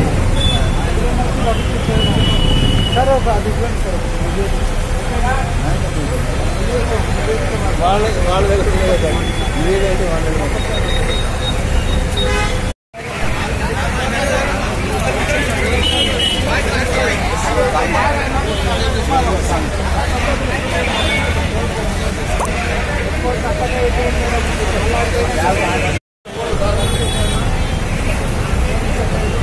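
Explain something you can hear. A crowd of men and women talks and shouts nearby, outdoors.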